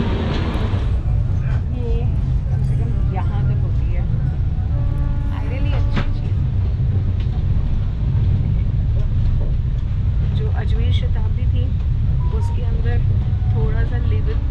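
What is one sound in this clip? A train carriage rumbles low and steadily.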